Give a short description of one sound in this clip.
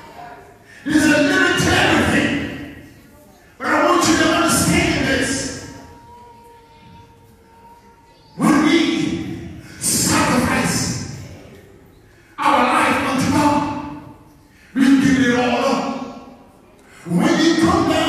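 A man preaches loudly into a microphone in bursts, with pauses in between.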